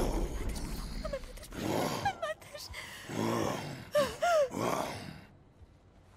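A young woman pleads in fear, close by.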